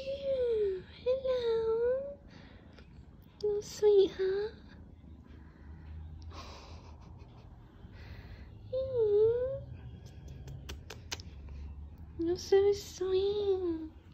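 A hand softly rubs a kitten's fur.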